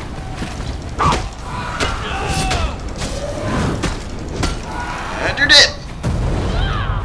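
Weapons strike and thud in a fight.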